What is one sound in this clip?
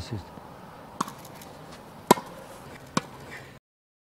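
A tennis ball is struck with a racket in sharp pops.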